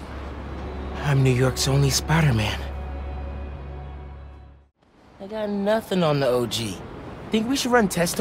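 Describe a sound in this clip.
A young man speaks casually, close by.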